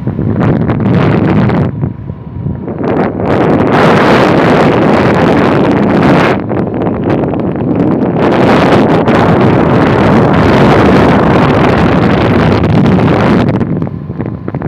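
Wind buffets loudly against the microphone in gusts.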